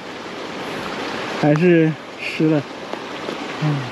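Boots scrape and crunch on loose rocks.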